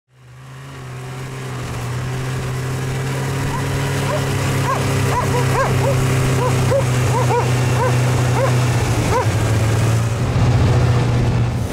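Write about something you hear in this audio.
A snowmobile engine hums steadily up close.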